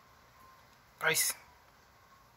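A dog gives a short, sharp bark close by.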